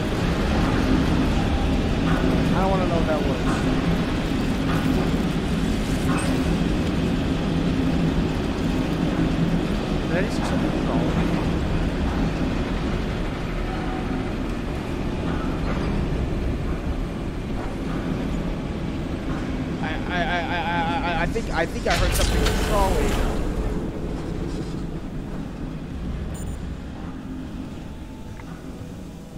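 A low mechanical hum drones steadily.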